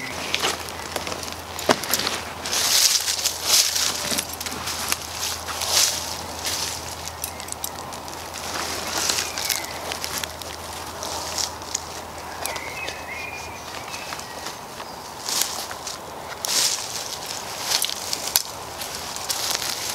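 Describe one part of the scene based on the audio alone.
Leaves and twigs crunch underfoot.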